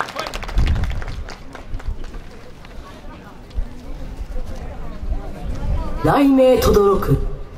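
Dancers stamp their feet on an outdoor stage.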